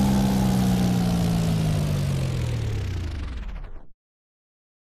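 A small propeller plane flies past, its engine dropping in pitch and fading away.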